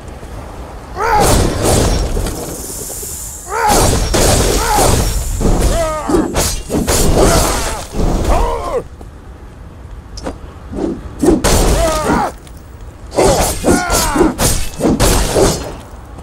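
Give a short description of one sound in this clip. Weapons slash and strike in a fast fight.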